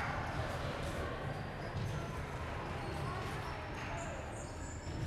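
A table tennis ball clicks back and forth between paddles and table in a large echoing hall.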